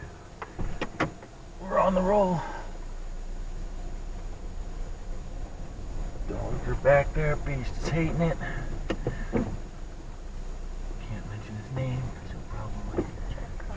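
A car engine hums as the car drives.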